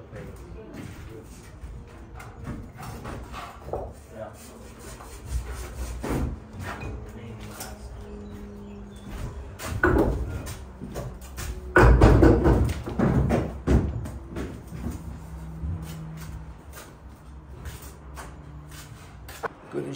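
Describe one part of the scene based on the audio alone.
Trowels scrape and tap on bricks and mortar.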